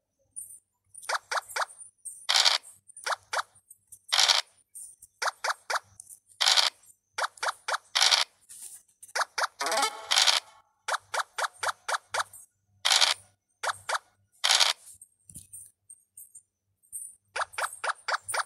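Game pieces tick with quick short clicks as they hop along.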